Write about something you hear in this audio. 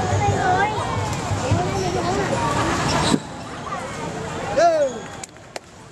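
Young players shout with excitement in a large echoing hall.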